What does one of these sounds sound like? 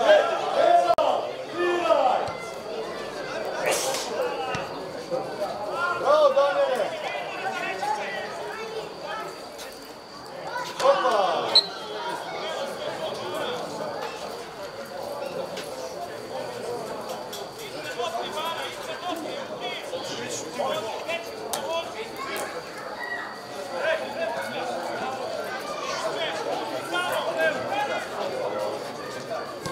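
Young men shout to each other from a distance across an open field outdoors.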